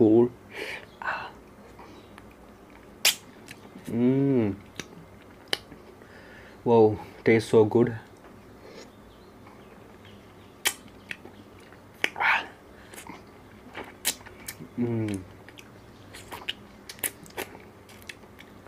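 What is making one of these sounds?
A man bites and crunches into an ice lolly.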